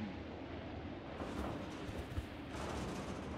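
Footsteps tread on a wooden floor.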